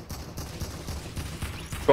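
Gunshots crack nearby.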